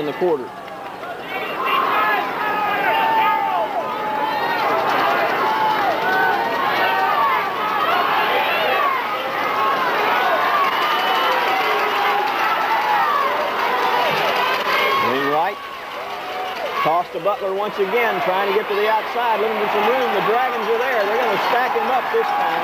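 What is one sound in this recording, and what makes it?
A large crowd cheers and shouts in the distance outdoors.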